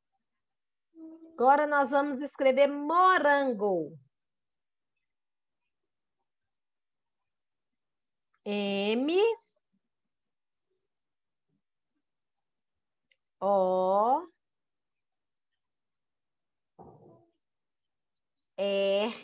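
A woman speaks slowly and clearly over an online call, drawing out words.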